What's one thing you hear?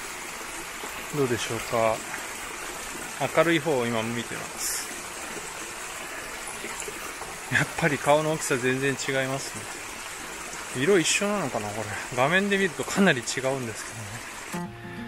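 A man talks calmly close to a microphone, outdoors.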